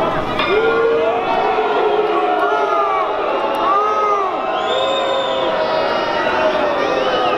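A large crowd of men and women shout and call out loudly outdoors.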